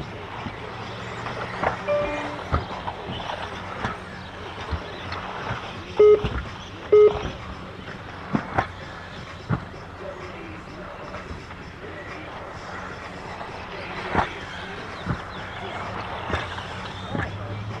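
Small electric motors whine as toy racing cars speed around outdoors.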